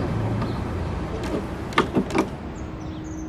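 A door handle clicks as it turns.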